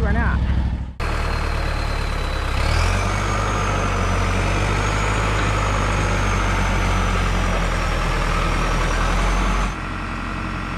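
A mower cuts grass.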